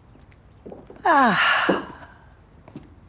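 A man exclaims loudly.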